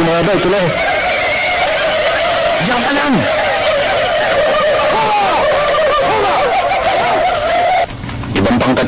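A crowd of men chants and shouts loudly.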